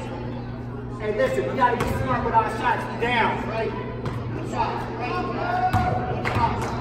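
Young players and spectators shout and call out in a large echoing gym.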